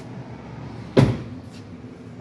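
A hand knocks against a car tyre.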